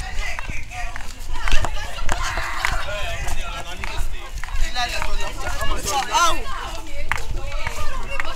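A crowd of people talks nearby.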